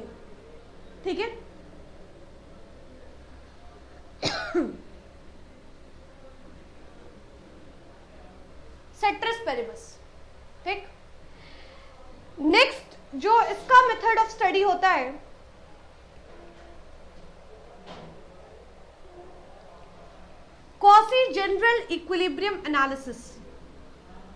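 A young woman speaks calmly and clearly, as if teaching, in short bursts with pauses.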